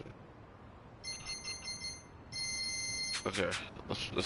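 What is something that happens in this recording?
Short electronic beeps sound in quick succession.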